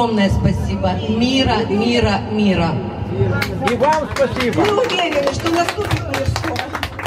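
Women sing together into microphones through a loudspeaker.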